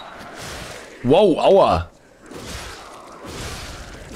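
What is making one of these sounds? A heavy weapon whooshes through the air.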